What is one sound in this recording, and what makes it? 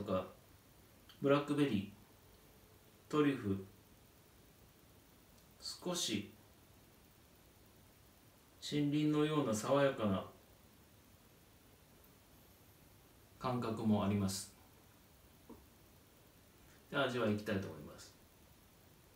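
A man speaks calmly and close by, in short phrases with pauses.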